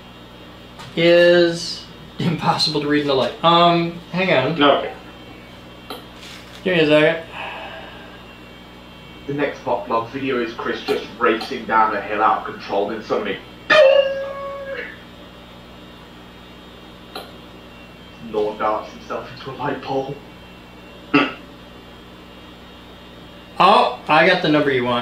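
A man talks calmly and close by, with pauses.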